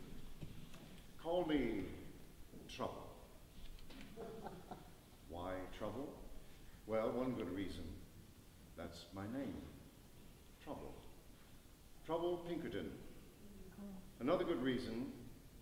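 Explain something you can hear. An elderly man speaks calmly to an audience in a large echoing hall.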